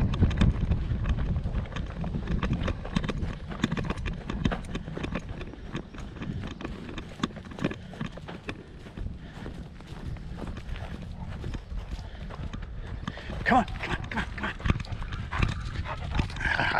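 A dog's paws patter on dry grass.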